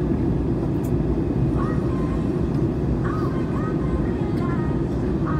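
A jet engine roars steadily from inside an airliner cabin.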